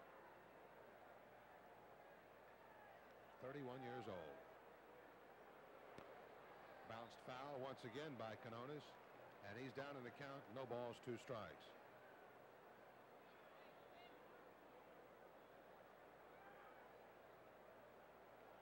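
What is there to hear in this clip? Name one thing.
A crowd murmurs softly in a large outdoor stadium.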